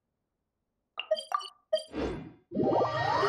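Menu chimes click softly.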